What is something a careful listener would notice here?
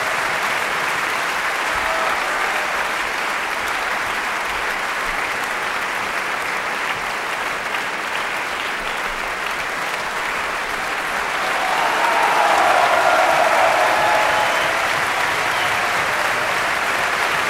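A large audience applauds in a large hall.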